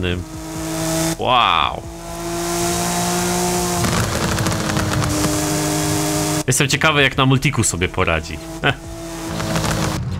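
A racing car engine roars at high revs.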